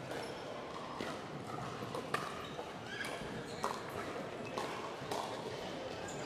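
Paddles strike a ball with sharp pops.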